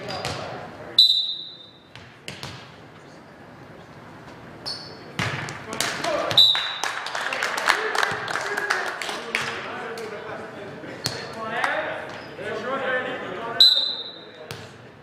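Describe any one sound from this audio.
A referee blows a sharp whistle in an echoing gym.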